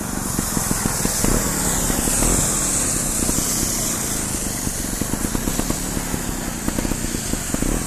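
A trials motorcycle engine putters at low revs.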